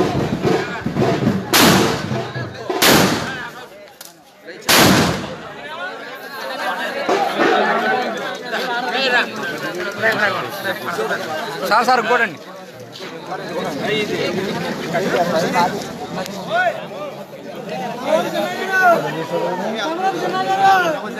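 A crowd of men talk and shout all around, close by.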